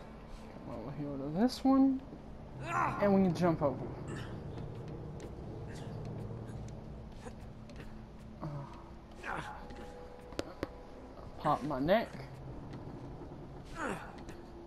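Hands grab and knock against metal rungs.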